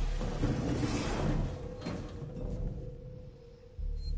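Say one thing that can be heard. Someone clambers through a metal hatch.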